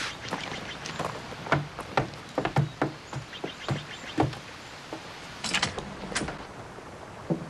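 Footsteps thud on a wooden porch.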